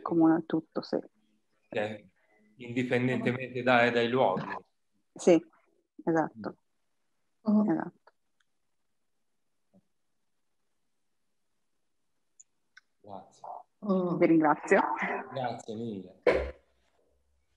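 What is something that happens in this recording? A middle-aged woman talks and laughs softly over an online call.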